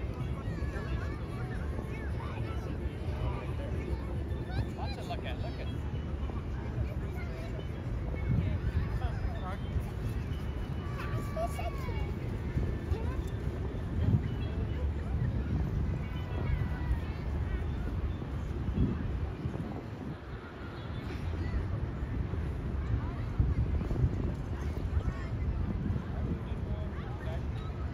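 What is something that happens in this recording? Men and women chat quietly at a distance outdoors.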